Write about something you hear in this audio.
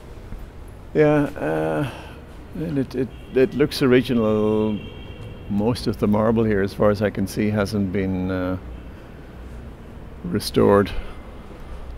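A man talks in a large echoing hall.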